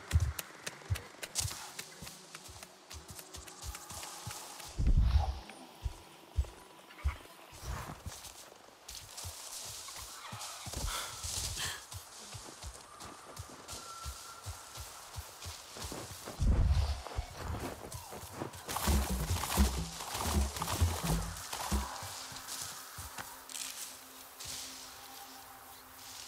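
Footsteps patter and rustle through leafy undergrowth.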